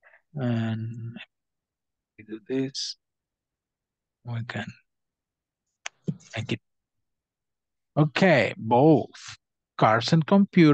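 A man speaks calmly into a microphone, heard over an online call.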